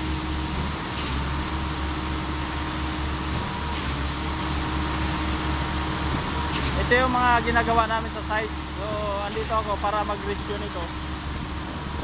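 Wet concrete pours and splatters from a hose.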